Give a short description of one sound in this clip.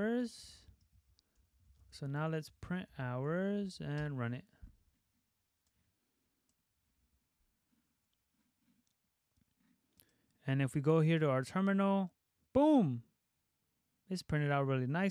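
A young man talks calmly and closely into a microphone, with pauses.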